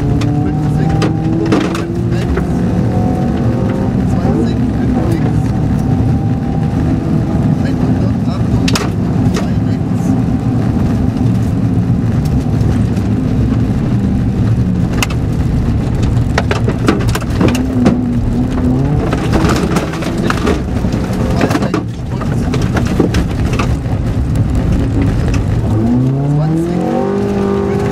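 A rally car engine roars and revs hard.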